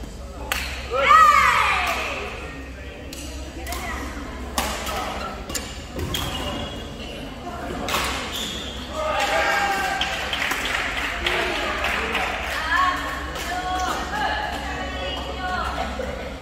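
Sports shoes squeak on a hard court floor in a large echoing hall.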